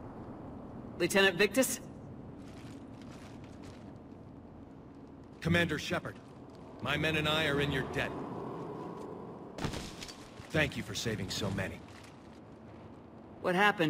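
A man speaks in a deep, rough voice in short bursts.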